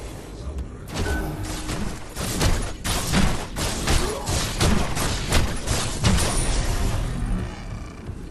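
Blades clash and strike repeatedly in a close fight.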